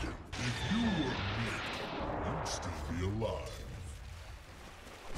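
Magical spell effects whoosh and crackle in a fantasy battle.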